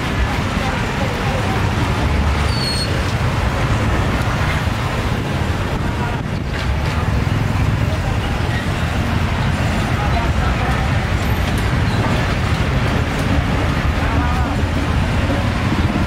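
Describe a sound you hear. A busy outdoor crowd murmurs and chatters.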